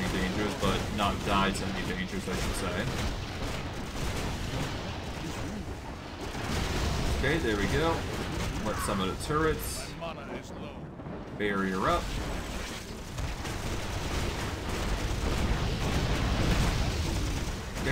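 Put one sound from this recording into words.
Magic blasts and weapon strikes clash in a fast fight.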